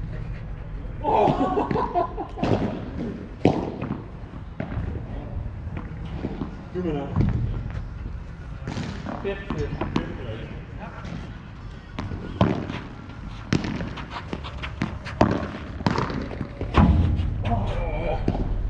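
Men call out and talk across an outdoor court.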